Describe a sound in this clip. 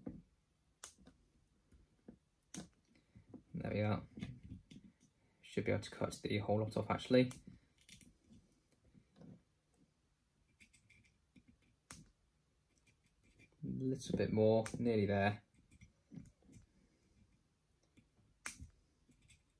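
Small plastic parts click faintly as they are handled.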